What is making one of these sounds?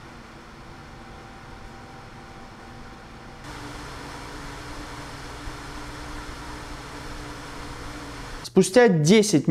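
A computer fan whirs steadily.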